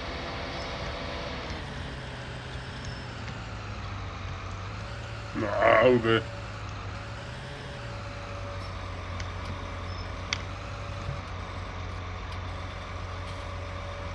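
A heavy machine's engine rumbles steadily.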